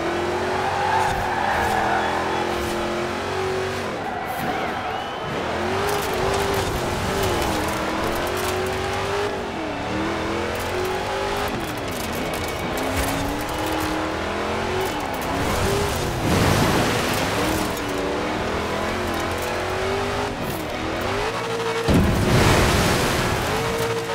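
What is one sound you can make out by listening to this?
An engine revs up and down steadily.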